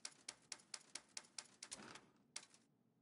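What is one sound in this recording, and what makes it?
Short electronic clicks tick in quick succession.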